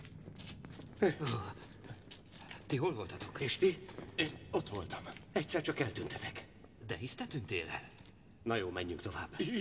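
Men talk with animation close by.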